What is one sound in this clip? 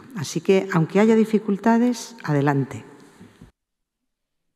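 A middle-aged woman speaks with animation into a microphone.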